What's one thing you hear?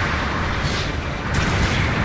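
Rocket thrusters roar as a giant robot boosts forward.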